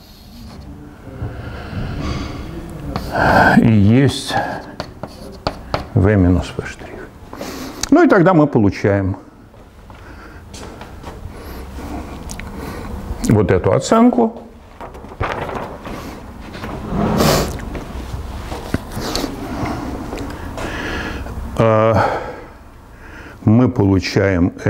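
An elderly man lectures calmly, heard through a microphone in an echoing room.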